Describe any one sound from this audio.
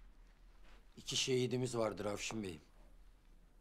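A man speaks in a tense, raised voice close by.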